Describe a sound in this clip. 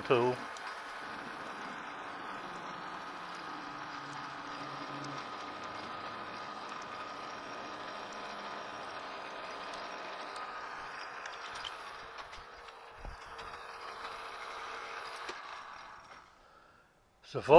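A metal lathe runs with a steady hum and slowly winds down.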